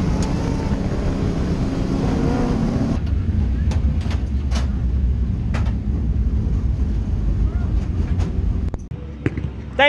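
A race car engine rumbles loudly from inside the cockpit.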